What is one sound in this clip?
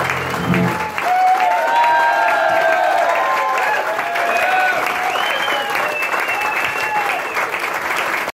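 An audience cheers and whistles loudly.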